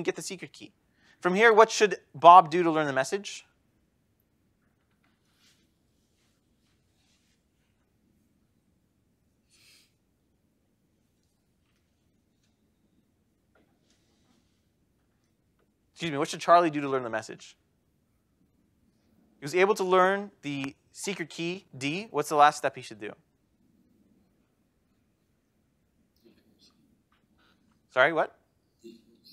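A man lectures calmly, speaking in short bursts with long pauses.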